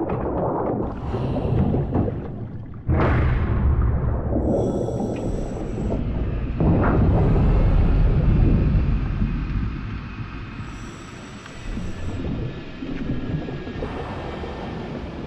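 A deep, muffled underwater rumble surges and swells.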